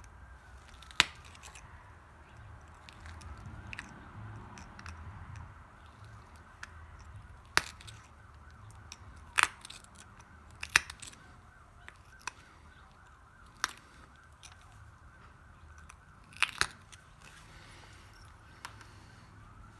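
A knife blade clicks sharply against wood now and then.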